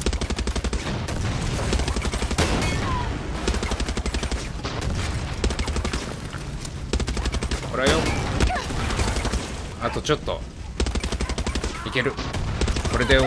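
Rapid gunfire rattles in bursts nearby.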